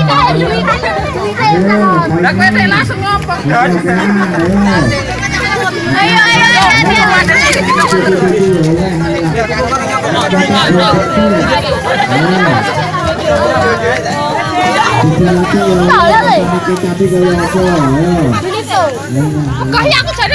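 Children chatter and laugh excitedly close by, outdoors.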